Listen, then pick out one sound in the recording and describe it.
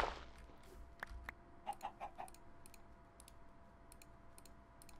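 Soft clicks come as items are moved about.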